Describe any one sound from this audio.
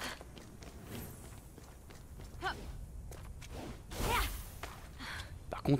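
Footsteps scrape and shuffle over rock.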